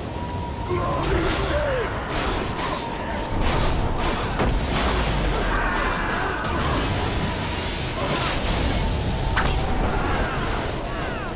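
Weapons clash and strike in a game fight.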